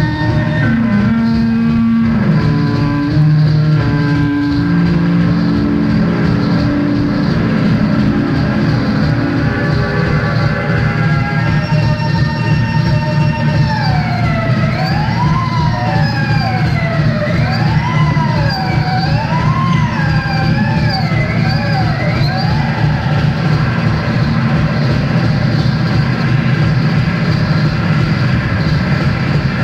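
A rock band plays music with electric guitar and drums.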